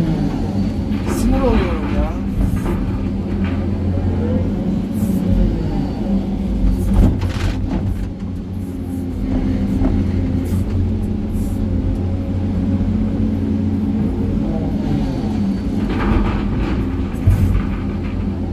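Rocks clatter and thud as they are dumped into a truck bed.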